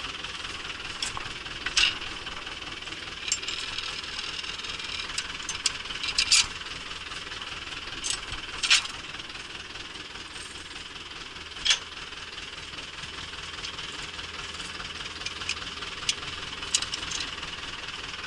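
Metal levers clank and knock as they are pulled and pushed by hand.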